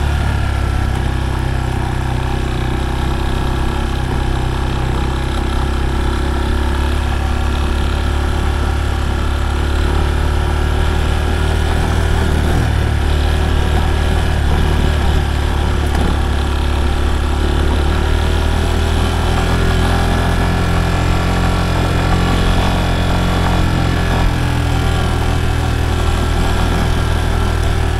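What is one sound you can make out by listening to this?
A motorcycle engine hums steadily and close by as the bike rides along.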